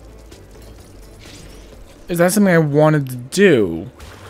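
Short bright chimes ring as fruit is collected in a game.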